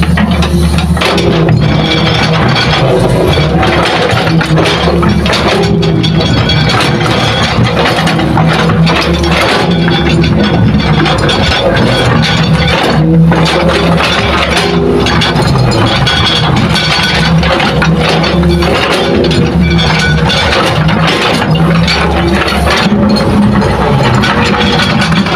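Soil and rocks scrape and tumble as an excavator bucket digs.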